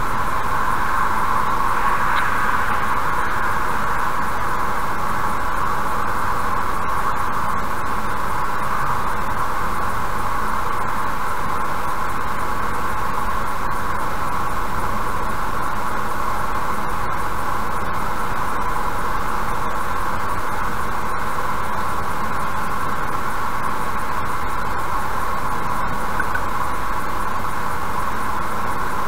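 Tyres roar steadily on the road from inside a fast-moving car.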